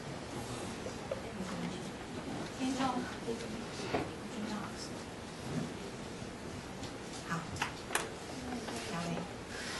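A young woman speaks calmly through a microphone in an echoing room.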